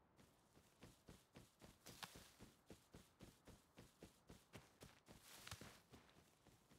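Footsteps crunch steadily on dry ground.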